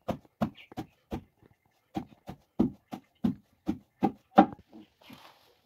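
A wooden pestle pounds rhythmically into a wooden mortar with dull thuds.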